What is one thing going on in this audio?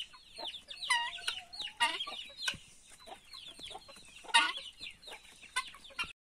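Birds chirp and call sharply throughout, outdoors.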